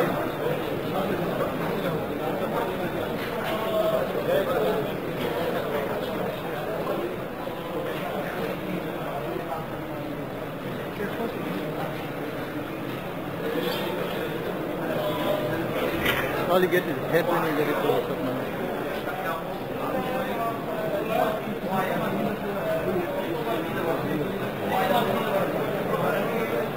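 A crowd of men murmurs and talks close by.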